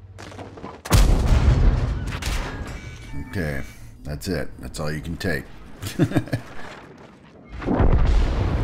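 A tank cannon fires with a loud, booming blast.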